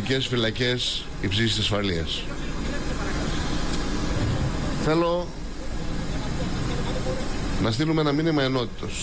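A middle-aged man speaks calmly into microphones close by.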